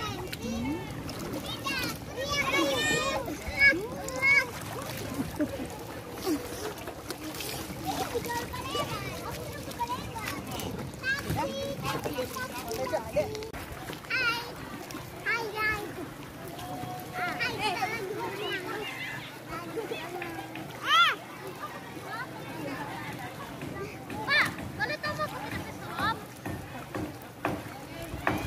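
Water splashes and laps around swimmers.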